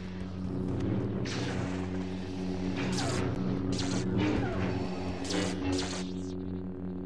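A lightsaber swooshes through the air in quick swings.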